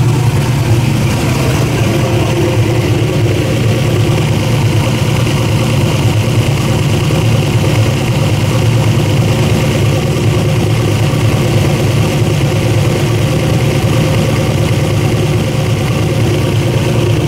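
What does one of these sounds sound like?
An engine idles loudly with a steady, deep rumble.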